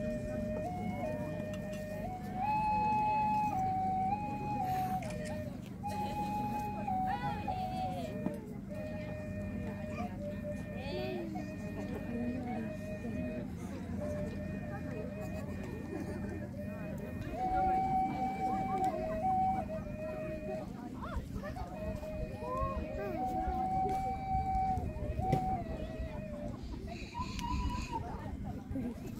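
A flute plays a slow melody of long, held notes.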